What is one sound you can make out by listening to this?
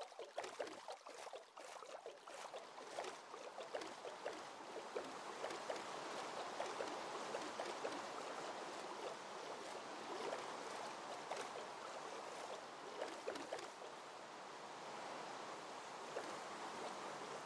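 Oars paddle and splash steadily through water.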